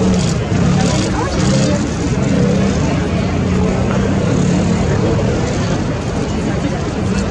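A motorcycle engine hums steadily nearby as it rolls slowly.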